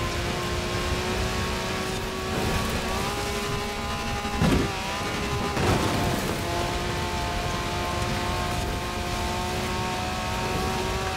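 An off-road buggy engine drones steadily at high revs.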